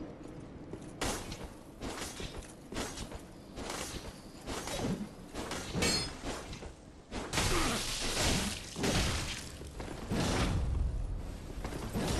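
A sword swings and strikes with sharp metallic clangs.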